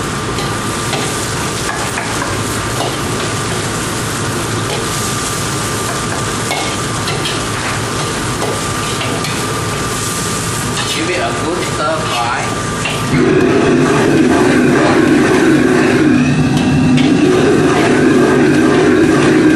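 Vegetables sizzle as they stir-fry in a wok.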